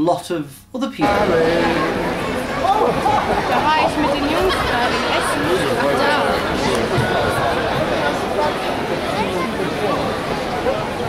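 A large outdoor crowd chatters and murmurs.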